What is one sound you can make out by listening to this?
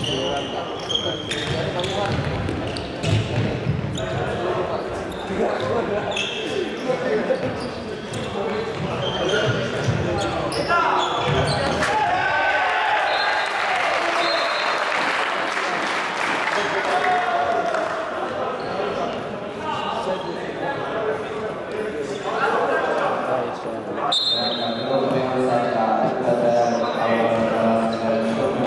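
Shoes squeak sharply on a wooden floor in a large echoing hall.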